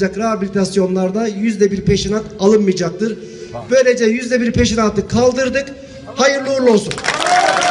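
A man speaks loudly into a microphone to an outdoor crowd, his voice booming through a loudspeaker.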